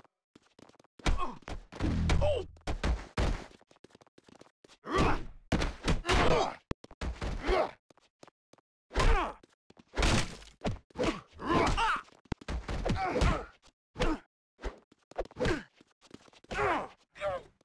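Men grunt and shout while brawling.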